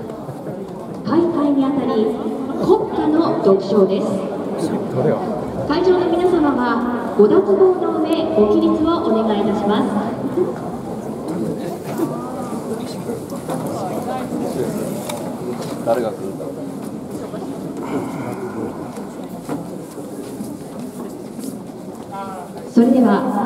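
A young man speaks over stadium loudspeakers, echoing outdoors.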